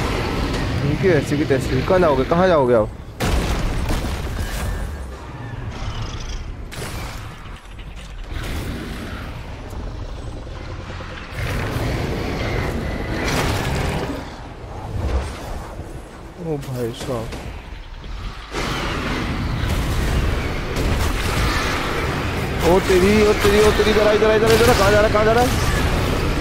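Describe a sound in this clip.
A dragon roars with a deep, wavering cry.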